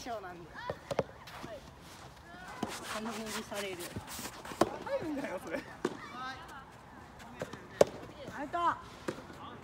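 Tennis balls pop off racquets with sharp hits.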